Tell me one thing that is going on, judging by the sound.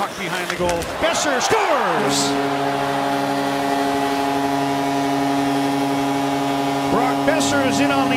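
A large crowd in an echoing arena cheers loudly.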